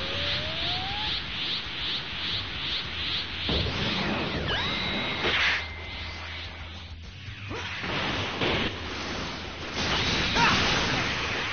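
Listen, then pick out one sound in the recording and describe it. Energy blasts and impacts boom and crackle in a fast fight.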